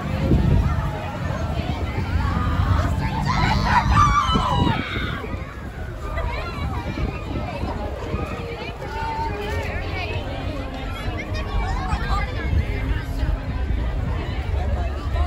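A crowd of people chatter and cheer along a street outdoors.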